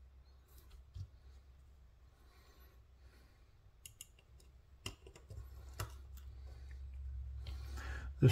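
Metal knife parts click and tap against each other.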